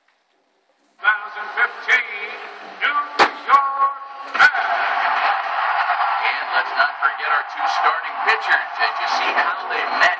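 A large stadium crowd cheers and roars loudly.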